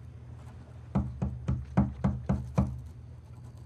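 Papers are shuffled and tapped on a desk.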